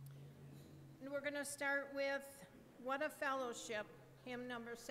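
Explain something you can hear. A woman speaks calmly through a microphone, filling an echoing hall.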